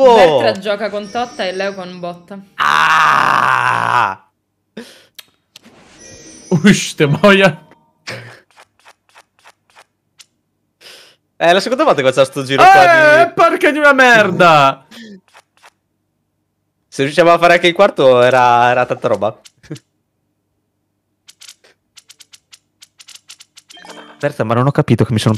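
Young men talk with animation over an online call.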